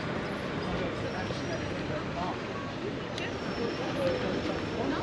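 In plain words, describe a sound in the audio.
People chatter far off outdoors.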